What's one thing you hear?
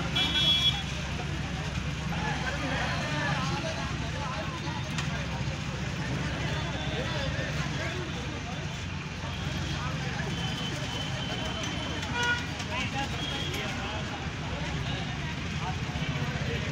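A van's engine idles.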